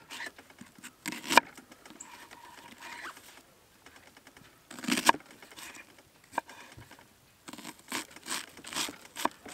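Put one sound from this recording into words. A knife slices through an onion and taps on a wooden board.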